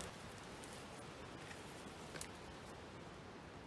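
Twigs and branches rustle and snap as a person pushes through brush.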